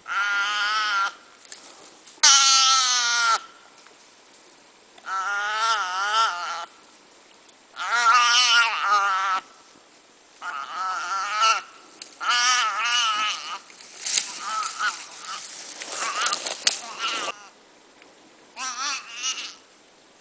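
A young animal bleats loudly and desperately in repeated cries, close by.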